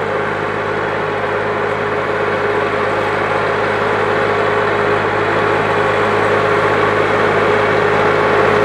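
A tractor engine rumbles steadily, growing louder as it approaches.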